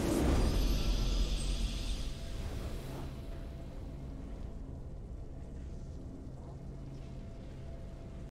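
A triumphant fanfare swells as the match ends.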